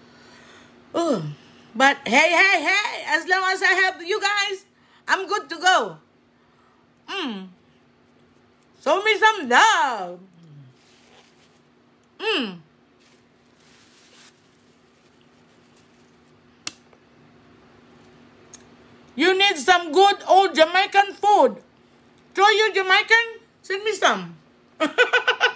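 A middle-aged woman talks with animation close to a microphone.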